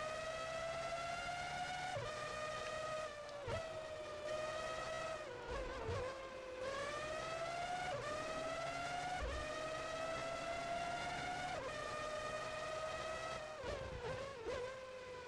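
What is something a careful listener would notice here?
A racing car engine screams at high revs, rising in pitch with sharp drops at each gear change.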